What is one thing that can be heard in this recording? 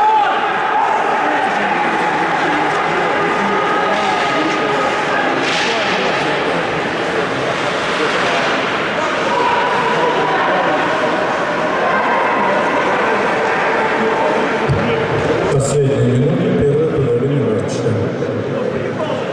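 Bandy players' skates scrape on ice in a large echoing indoor arena.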